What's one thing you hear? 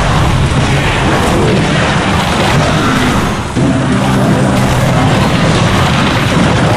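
Video game battle sounds clash and crackle.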